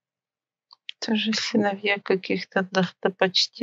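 A woman speaks calmly, heard through an online call.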